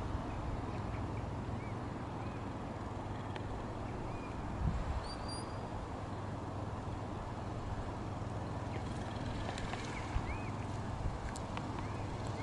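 Sheep bleat faintly.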